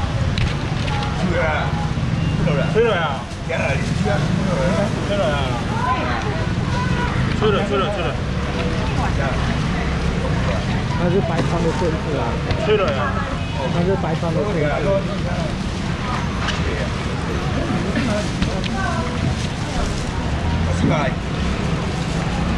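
A middle-aged man talks with animation nearby.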